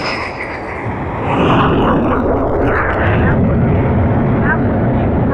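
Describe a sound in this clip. A jet engine roars loudly close by.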